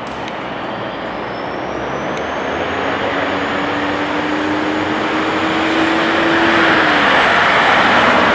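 A propeller plane's engine whine rises in pitch as the plane accelerates.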